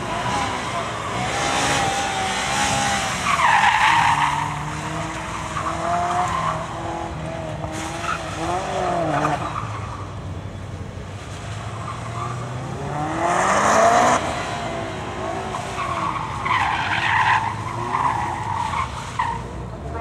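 A car engine revs hard and rises and falls in pitch as the car slides around.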